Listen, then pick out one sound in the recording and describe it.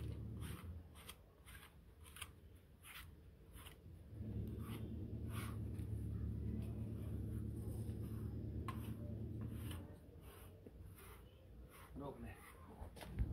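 A brush rasps through a dog's thick fur in quick, repeated strokes.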